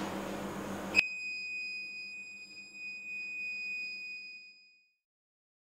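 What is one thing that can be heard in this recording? An electronic power backup unit gives a steady high beep.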